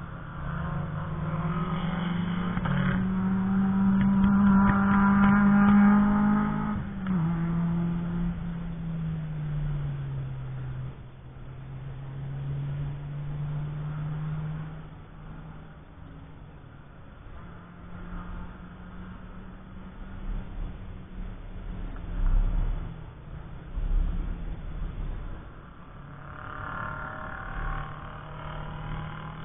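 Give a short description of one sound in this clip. Race car engines drone and roar past on a track, outdoors.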